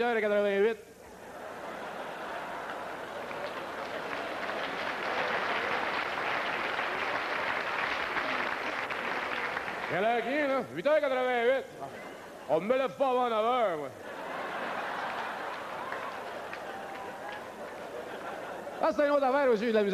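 A large audience applauds.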